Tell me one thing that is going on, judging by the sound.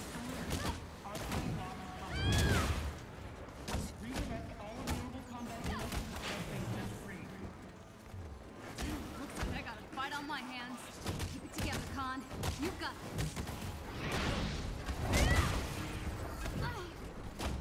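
Punches and blows land with heavy thuds during a fight.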